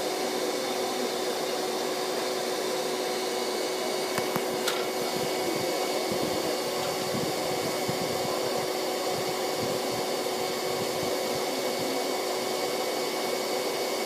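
A vacuum hose hums steadily as it sucks up bees.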